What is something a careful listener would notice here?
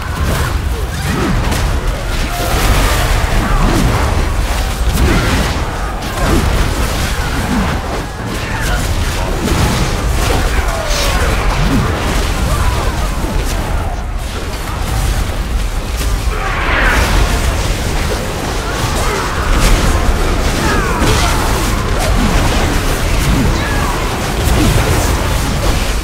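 Swords clash and spells burst in a busy, noisy fight.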